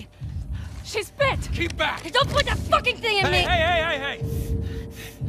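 A man shouts and laughs mockingly.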